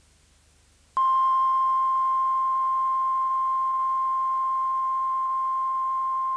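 A steady, high-pitched test tone sounds without a break.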